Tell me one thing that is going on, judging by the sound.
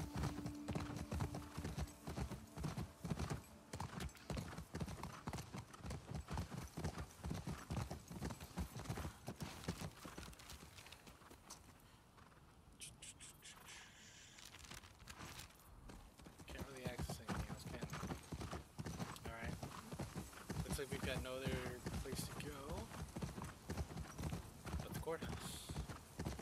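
A horse's hooves thud steadily on soft ground.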